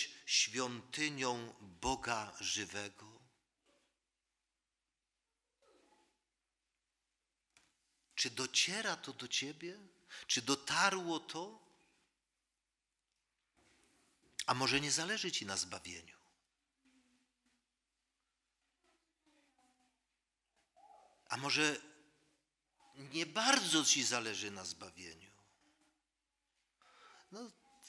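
An elderly man preaches into a microphone in slow, measured phrases with long pauses.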